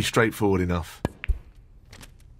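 A cue strikes a snooker ball with a sharp knock.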